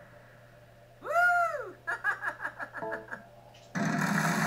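Short electronic jingle tones play from a television speaker.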